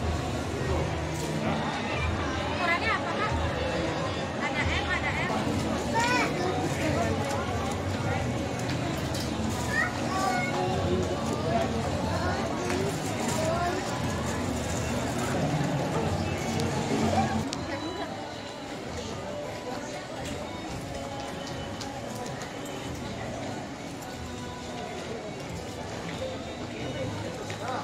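A crowd of shoppers chatters in an echoing indoor hall.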